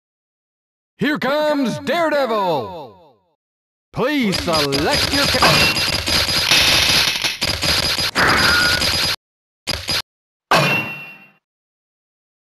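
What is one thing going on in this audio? Video game sound effects whoosh and chime in short bursts.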